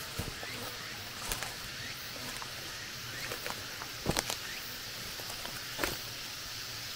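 Footsteps crunch on twigs and leaf litter.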